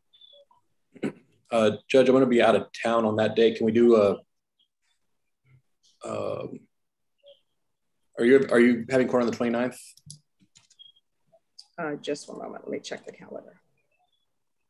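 A man speaks calmly over an online call, pausing between phrases.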